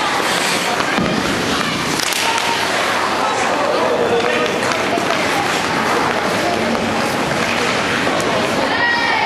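Hockey sticks knock against a puck.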